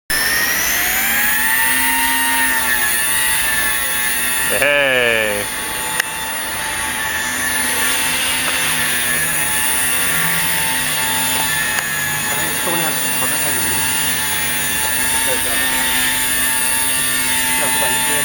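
A small drone's motors whine steadily with a high buzz, changing pitch as it flies.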